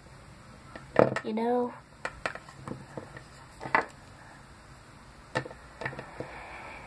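A small plastic toy taps on a hard surface.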